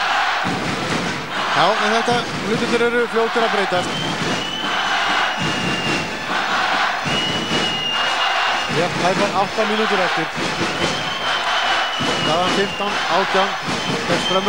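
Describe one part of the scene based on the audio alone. A large crowd cheers and roars in an echoing hall.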